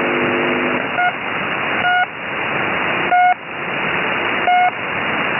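A radio receiver gives out short, loud beeps.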